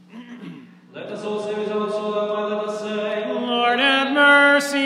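A man chants a slow melody in an echoing hall.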